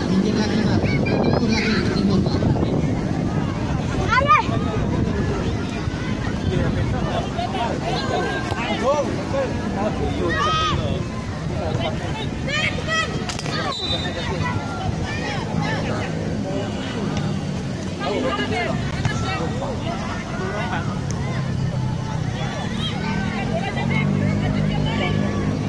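Young boys call out to each other while playing football.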